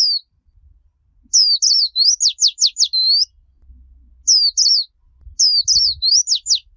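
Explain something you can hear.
A small bird sings close by in short, high, quick chirping phrases.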